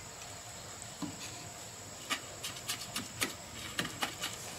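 A trowel scrapes and taps wet mortar.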